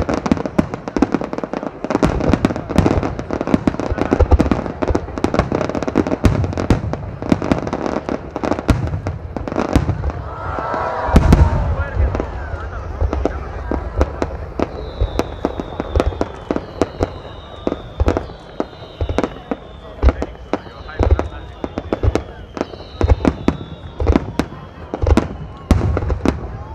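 Aerial firework shells burst with deep booms that echo outdoors.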